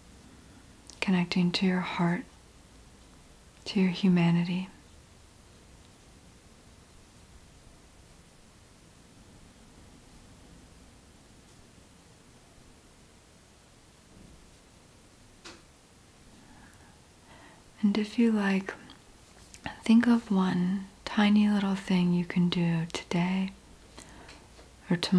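A young woman speaks calmly and close to a microphone, in short bursts with long pauses.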